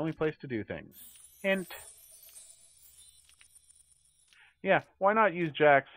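A magical sparkle chimes and shimmers.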